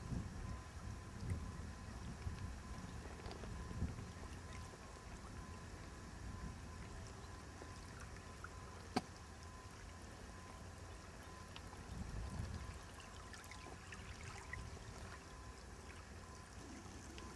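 Wind gusts blow across open water.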